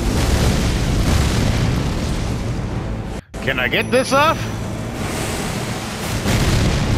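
A huge explosion roars with a deep, rumbling blast.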